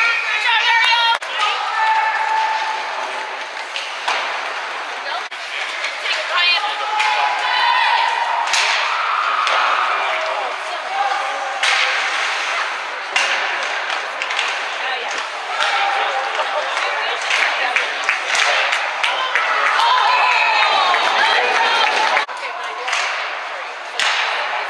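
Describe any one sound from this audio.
A crowd of spectators shouts and cheers in an echoing rink.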